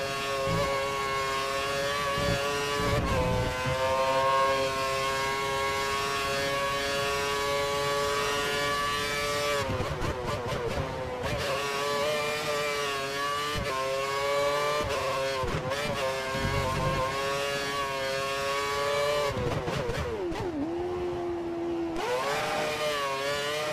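A racing car engine screams at high revs, dropping in pitch with each gear change and braking, then climbing again.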